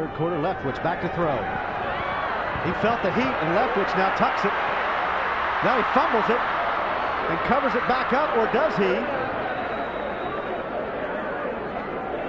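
A stadium crowd roars and cheers, swelling loudly and then easing off.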